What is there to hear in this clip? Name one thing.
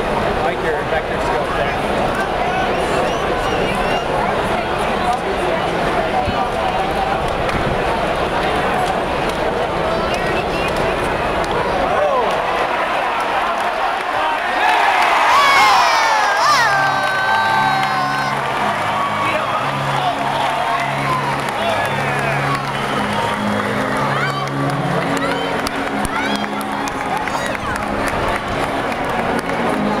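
A large stadium crowd murmurs and chatters outdoors.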